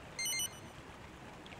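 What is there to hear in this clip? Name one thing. A short electronic menu chime beeps.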